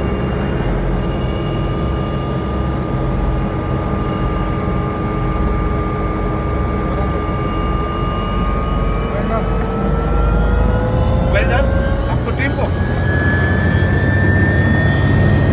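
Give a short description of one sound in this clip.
An aircraft's propeller engine drones loudly and steadily, its pitch slowly rising.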